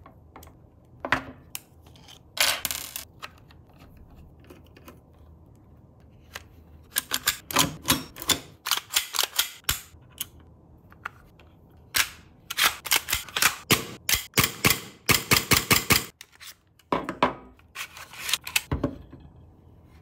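Metal and plastic parts click and clack as they are fitted together.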